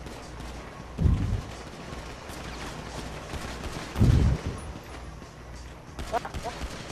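A pistol fires single loud shots.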